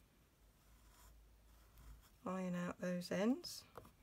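A bone folder scrapes across paper as it presses a crease.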